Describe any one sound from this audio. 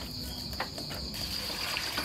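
Water pours into a metal pot.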